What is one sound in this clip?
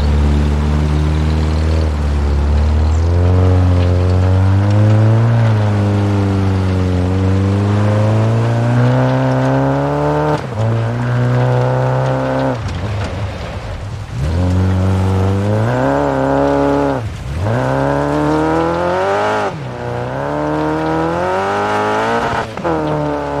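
A rally car engine revs hard, rising and falling as the gears shift.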